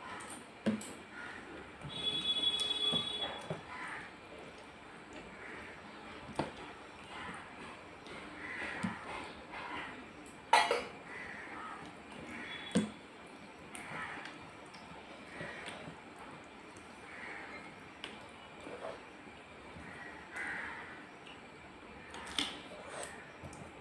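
A young woman chews and smacks food close by.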